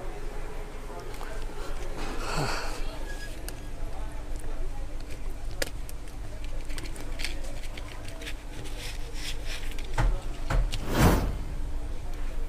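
Small plastic and metal parts click and rattle as hands handle them.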